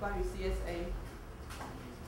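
A woman speaks softly into a microphone.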